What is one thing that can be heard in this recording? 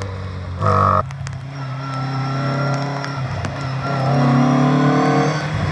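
An old car's engine drones as it approaches up the road.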